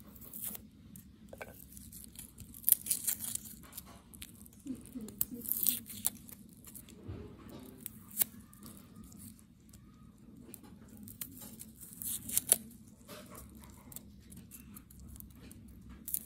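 A knife scrapes and crackles against garlic skins.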